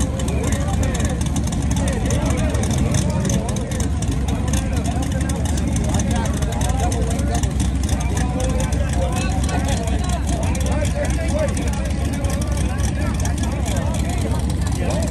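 A race car engine idles loudly with a rough, rumbling burble.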